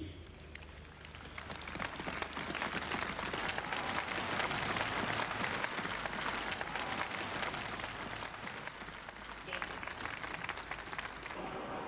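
A large crowd applauds in a wide open space.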